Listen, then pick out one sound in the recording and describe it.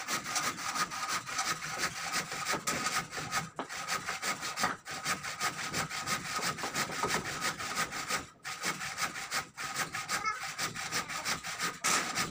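A man knocks and scrapes on wooden roof beams.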